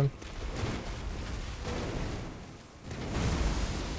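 Heavy weapons clash and strike in a fight.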